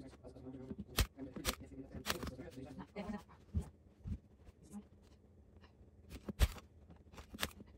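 Fabric rustles as a cushion is handled.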